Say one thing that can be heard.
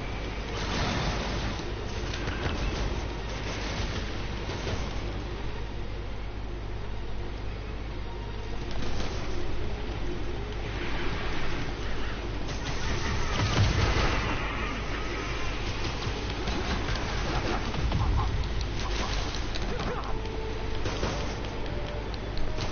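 Punches and kicks thud in a fast fight.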